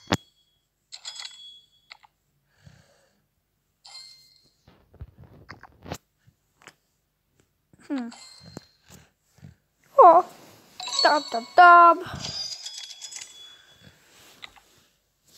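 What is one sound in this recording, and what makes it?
Short electronic chimes and jingles play, with a quick rising sparkle of tones.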